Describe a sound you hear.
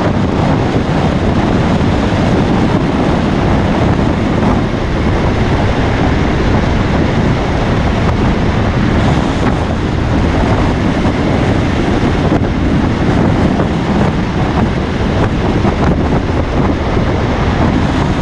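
A vehicle's engine hums steadily as it drives at speed.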